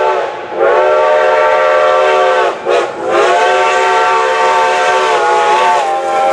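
A train horn blasts loudly in long repeated calls.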